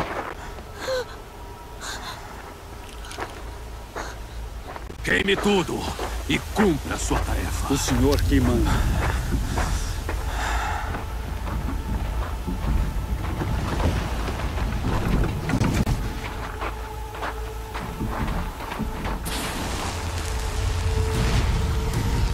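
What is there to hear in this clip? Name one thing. Wind blows across open snow.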